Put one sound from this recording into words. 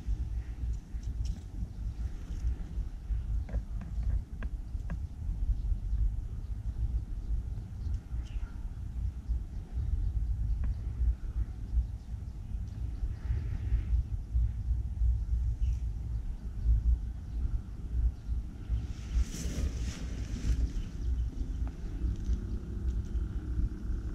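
A hand brushes through rice leaves with a soft rustle.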